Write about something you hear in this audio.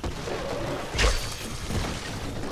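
A blade strikes flesh with a heavy thud.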